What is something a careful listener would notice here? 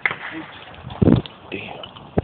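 A shotgun fires with a sharp bang.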